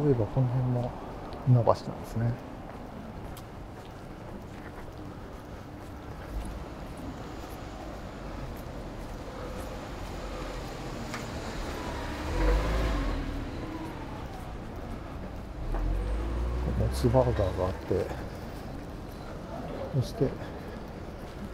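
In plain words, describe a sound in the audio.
A quiet street hums softly in the background outdoors.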